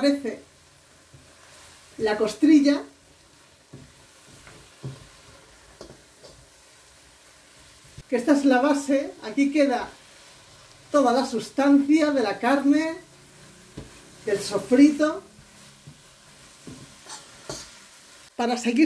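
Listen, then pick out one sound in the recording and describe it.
A spatula scrapes and stirs food in a metal pot.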